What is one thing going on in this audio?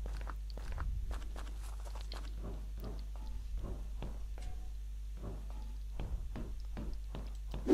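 Footsteps thud steadily on a metal stairway.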